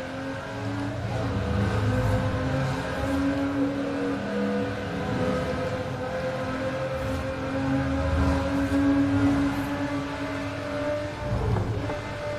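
A car engine echoes loudly inside a tunnel.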